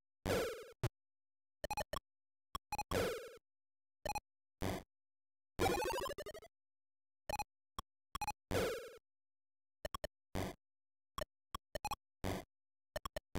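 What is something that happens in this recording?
Short electronic beeps and blips from a handheld game chime in bursts.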